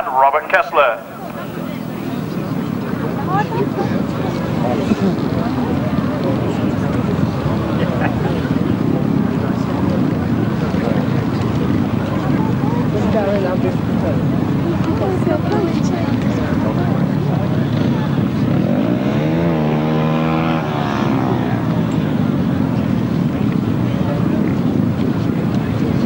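Motorcycle engines roar and rev loudly nearby.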